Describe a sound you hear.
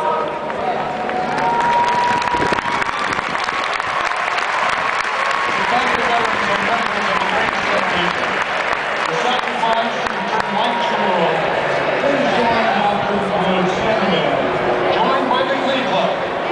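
A stadium crowd cheers and murmurs in the distance.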